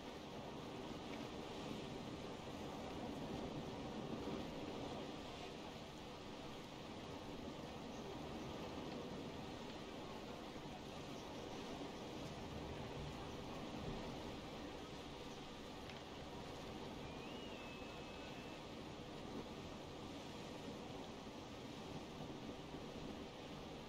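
Waves wash and splash steadily against a sailing ship's hull.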